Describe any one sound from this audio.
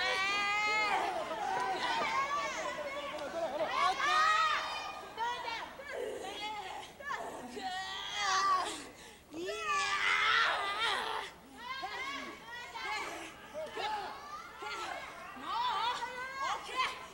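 A young woman shouts.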